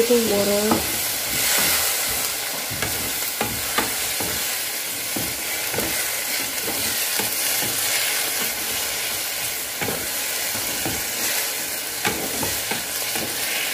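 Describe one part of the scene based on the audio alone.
A wooden spatula scrapes and stirs vegetables in a pan.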